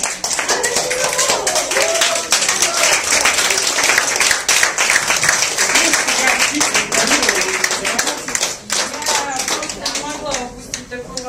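A group of people clap their hands.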